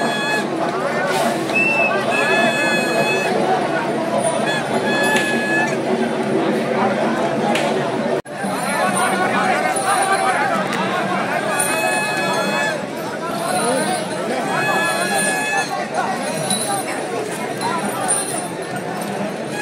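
A large crowd outdoors chatters and cheers loudly.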